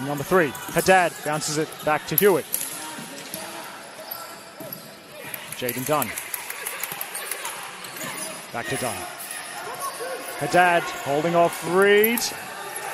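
Young players shout to each other in a large echoing hall.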